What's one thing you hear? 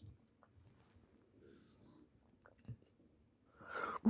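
A young person gulps a drink from a can.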